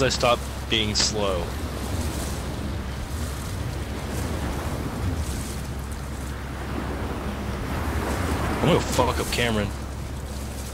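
A young man speaks briefly and casually, close to a microphone.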